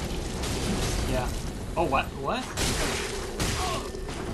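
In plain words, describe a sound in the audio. Metal weapons clash and strike repeatedly.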